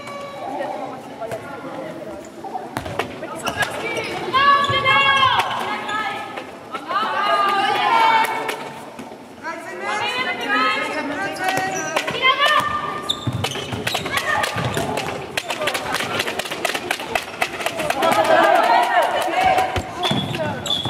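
A ball bounces and thuds on a hard floor.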